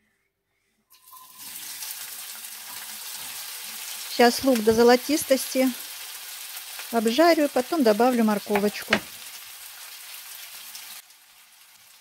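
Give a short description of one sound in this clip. Chopped onions sizzle loudly in hot oil in a frying pan.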